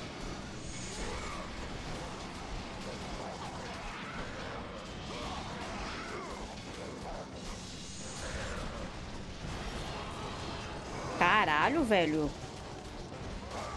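Blades whoosh and slash with game combat sounds.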